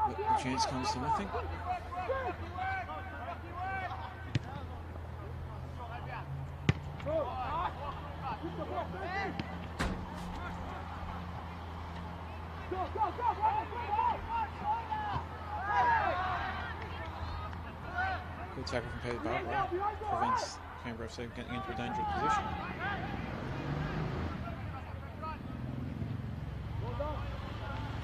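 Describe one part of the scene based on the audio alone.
Young male players shout and call to each other across an open field.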